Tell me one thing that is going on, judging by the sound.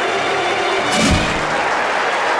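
A heavy helmet thuds onto the ground.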